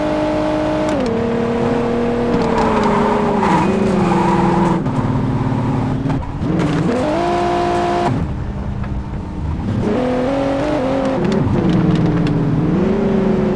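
A car engine slows down and idles roughly.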